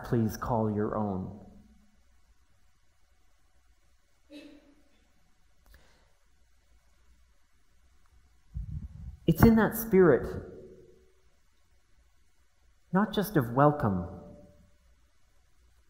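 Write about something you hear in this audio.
A man speaks slowly and calmly through a microphone.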